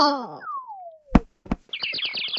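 A cartoon cat falls to the ground with a thump.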